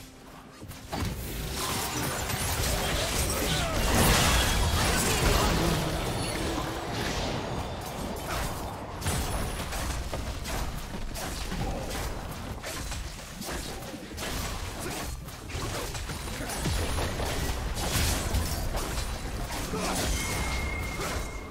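Magic blasts and clashing hits burst in quick succession during a fight.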